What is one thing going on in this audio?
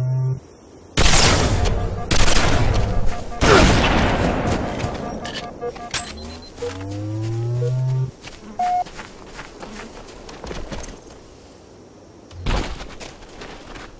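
Gunshots crack loudly with booming echoes.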